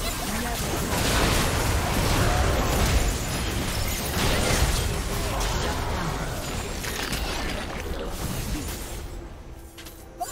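Magic spells crackle, whoosh and burst in a fierce fight.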